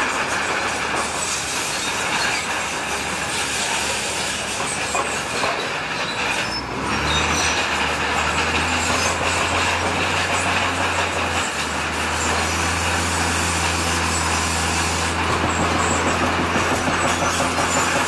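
A bulldozer engine rumbles steadily.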